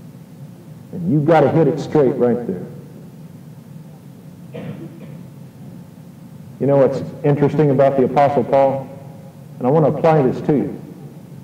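A man speaks calmly in short phrases through a microphone.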